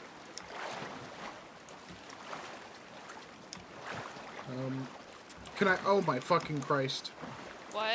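Water splashes with swimming strokes.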